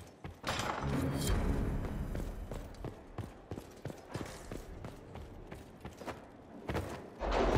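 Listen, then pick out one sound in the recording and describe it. Footsteps thud on stone floors.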